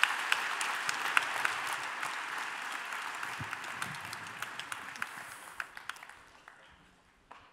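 An audience claps and cheers in a large hall, then the applause fades.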